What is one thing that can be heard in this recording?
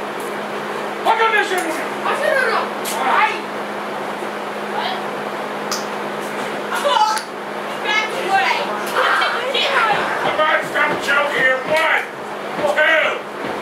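Men shout and cheer loudly in an echoing room.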